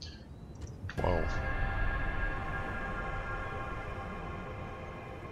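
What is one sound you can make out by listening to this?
A low ringing chord rings out and slowly fades.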